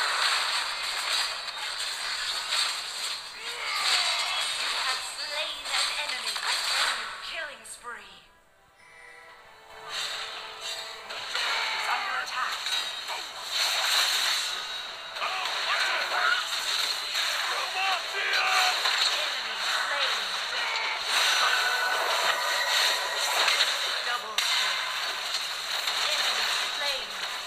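Game combat sounds of spells and strikes clash rapidly.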